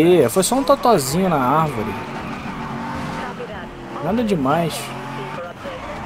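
Tyres screech as a car slides.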